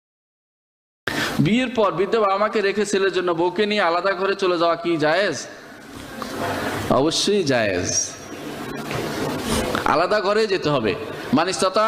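A middle-aged man preaches with animation through a microphone.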